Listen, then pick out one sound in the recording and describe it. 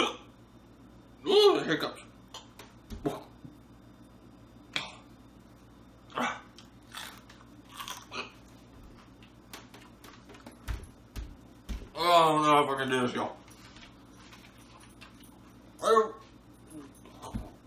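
A young man crunches on food while chewing.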